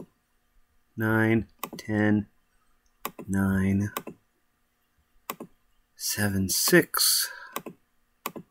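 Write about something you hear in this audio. A man speaks calmly, close to a microphone.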